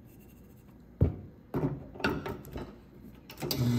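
A metal coffee filter holder clanks and knocks against a coffee machine.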